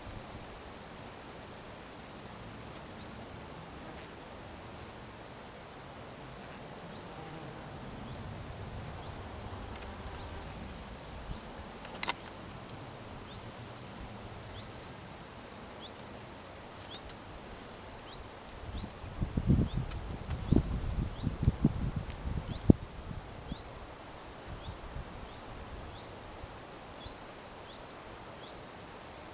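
Bees buzz softly around a flower.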